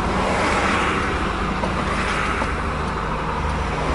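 Oncoming cars whoosh past.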